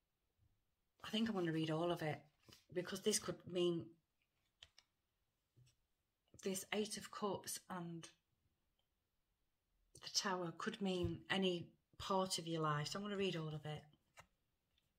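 A middle-aged woman speaks calmly and close to a microphone, in short bursts with pauses.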